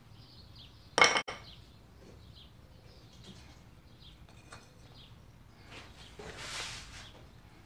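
Small pieces of wood knock and clatter together close by.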